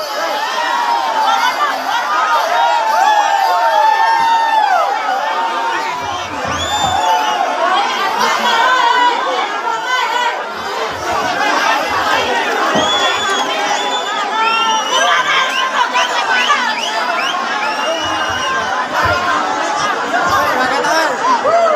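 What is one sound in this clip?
A large crowd of young people shouts and cheers loudly outdoors.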